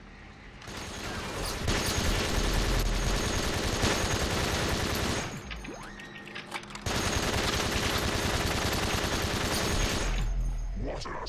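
A heavy rapid-fire gun roars in long bursts.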